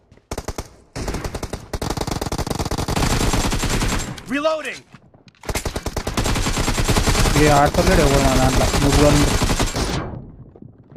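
Automatic rifle fire rattles in a video game.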